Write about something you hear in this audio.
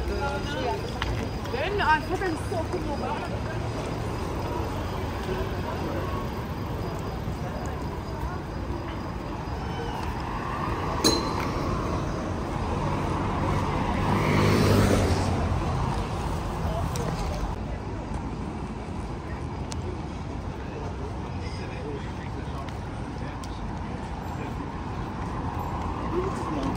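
A murmur of distant voices and street noise fills the air outdoors.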